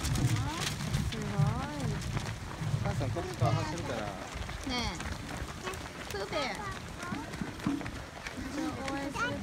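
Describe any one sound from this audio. Many footsteps patter on the road as runners pass.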